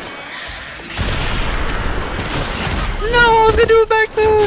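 A loud blast booms and crackles.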